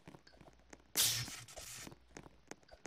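A taser fires with a sharp electric crackle.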